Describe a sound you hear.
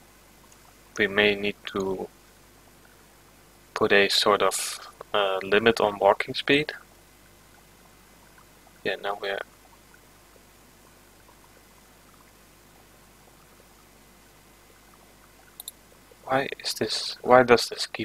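A young man speaks calmly into a headset microphone, in short bursts.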